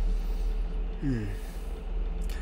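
A young man murmurs softly into a microphone.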